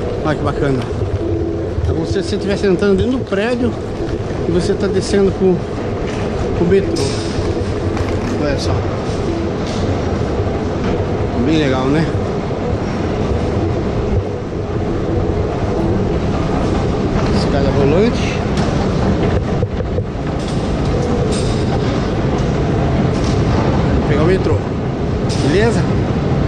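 People chatter nearby in a tunnel that echoes.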